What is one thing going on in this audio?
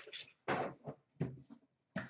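A cardboard box flap rustles as a hand pulls it.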